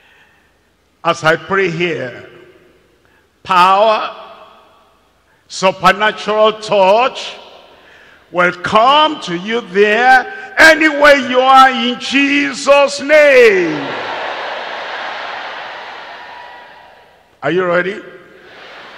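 An elderly man preaches loudly and with animation through a microphone.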